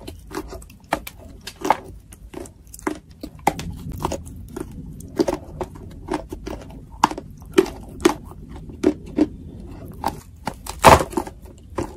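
A woman bites into crisp bread with a crunch.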